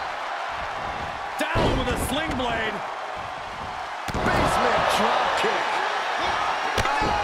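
A large crowd cheers and roars throughout.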